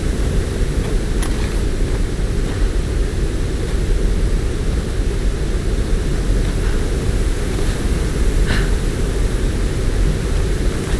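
Footsteps tread on dirt and wooden planks.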